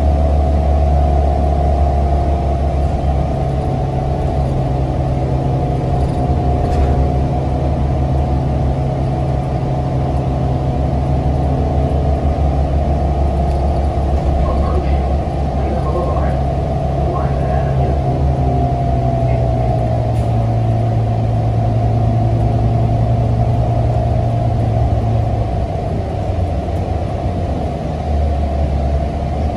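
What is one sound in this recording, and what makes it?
A bus engine hums low and steady while driving.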